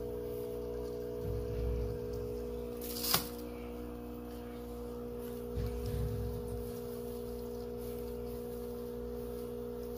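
A hand rustles through dry wood shavings.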